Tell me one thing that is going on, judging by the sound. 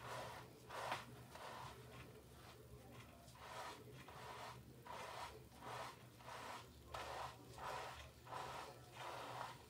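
Fingers rub and squish through lathered hair in a steady rhythm.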